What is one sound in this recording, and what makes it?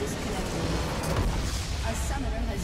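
A loud explosion booms and crumbles.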